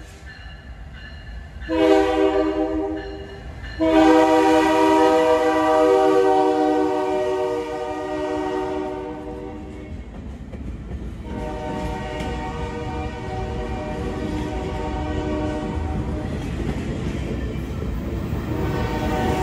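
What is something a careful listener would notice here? A freight train rumbles and clatters past on the rails.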